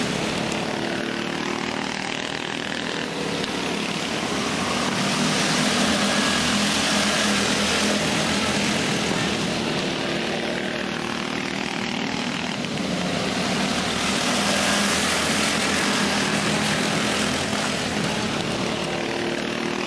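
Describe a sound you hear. Small go-kart engines buzz and whine as they race around a track.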